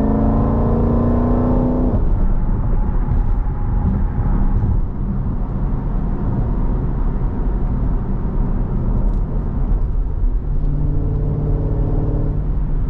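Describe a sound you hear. A car engine revs loudly, then drops off and revs again.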